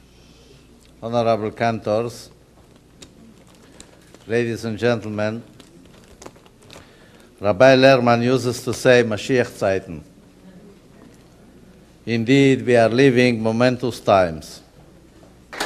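An elderly man speaks into a microphone in slow phrases with pauses.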